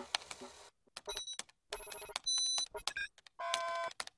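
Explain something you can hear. Fingers type on a laptop keyboard.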